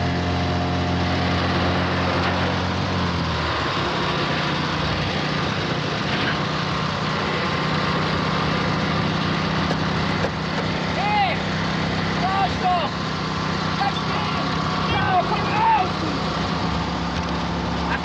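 A heavy truck engine rumbles steadily close by.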